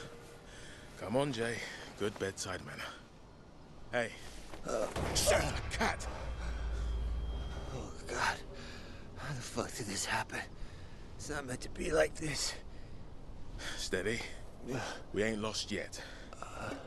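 A second man speaks calmly and reassuringly nearby.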